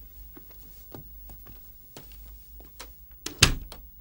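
A door closes with a thud.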